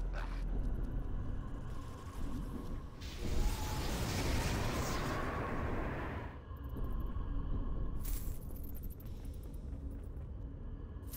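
A wall of fire roars and crackles.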